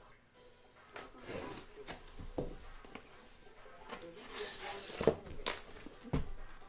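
Packing tape rips off a cardboard box.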